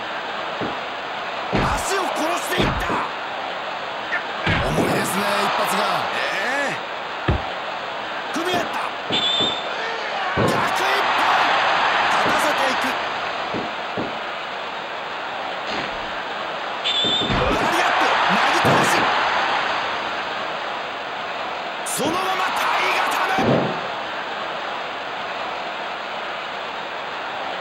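A crowd cheers and roars in a large arena, swelling in waves.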